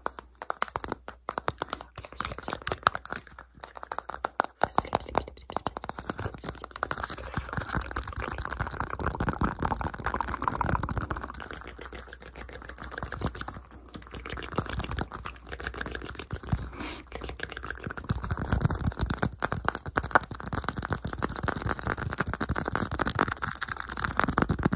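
Fingertips tap and scratch on a plastic lid close to a microphone.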